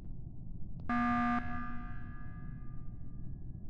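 An emergency alarm blares once in a video game.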